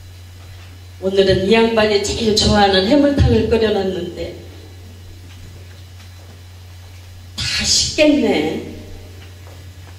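An elderly woman speaks with animation through a microphone in an echoing hall.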